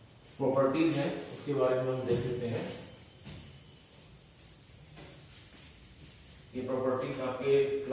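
A man speaks clearly and steadily, as if explaining, close by.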